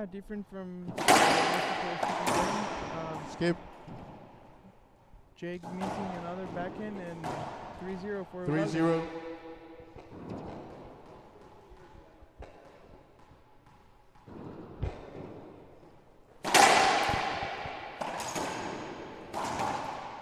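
A racquetball smacks loudly off the walls, echoing around the court.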